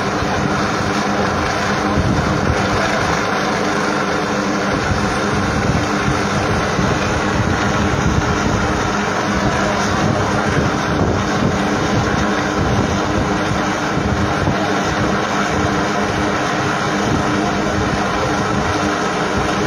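A helicopter's rotor thumps and drones steadily in the distance.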